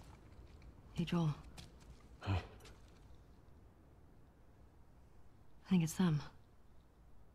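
A young woman speaks quietly and questioningly.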